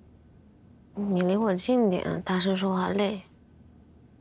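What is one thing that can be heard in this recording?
A young woman speaks wearily and quietly, close by.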